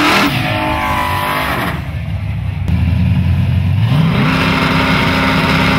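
A loud truck engine rumbles and revs nearby outdoors.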